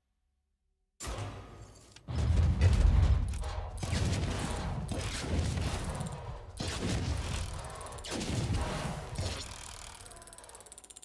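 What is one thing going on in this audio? A game's chest upgrades with booming, shimmering effects.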